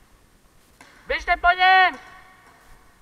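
A young man shouts loudly in a large echoing hall.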